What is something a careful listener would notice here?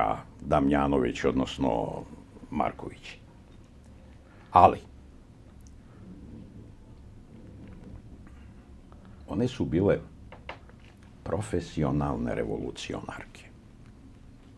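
An elderly man speaks calmly and close by, with pauses.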